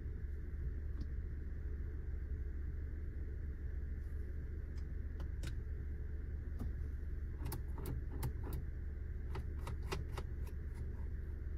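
Fingertips tap and click on a touchscreen close by.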